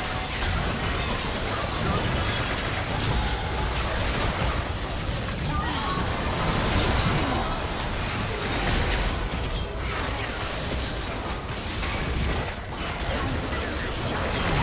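Game spell effects and hits crackle and whoosh in a busy fight.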